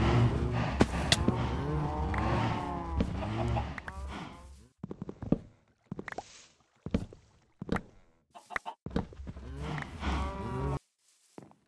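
An axe chops at wood with sharp knocks.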